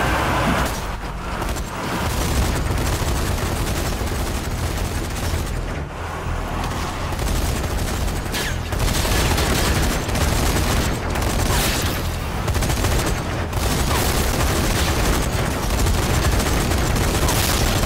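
A flamethrower roars with a rushing blast of fire.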